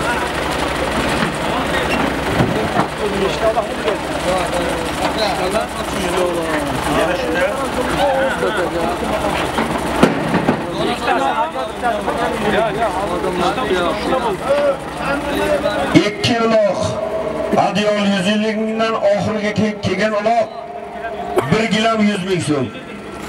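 Several men talk and shout nearby outdoors.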